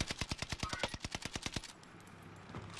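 Rapid gunfire cracks in quick bursts.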